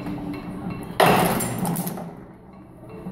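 A can bodymaker forms a can body from sheet metal with a loud burst of noise.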